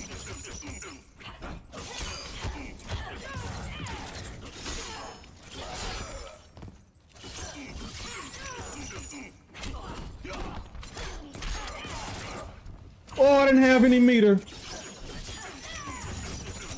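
Icy blasts whoosh and crackle.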